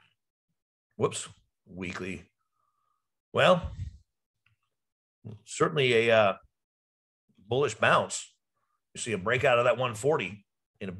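A man speaks calmly into a microphone, heard close up in short phrases.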